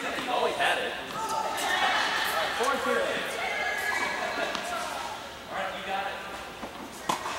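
Tennis rackets strike balls in a large echoing hall.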